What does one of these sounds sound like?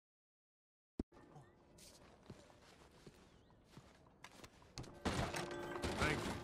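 Boots thud on a wooden floor.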